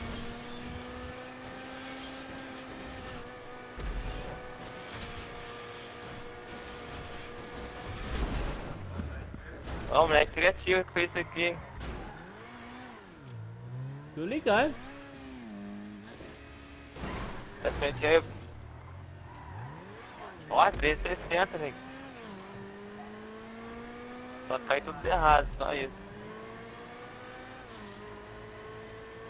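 A supercar engine roars at high revs, its pitch climbing and dropping with gear changes.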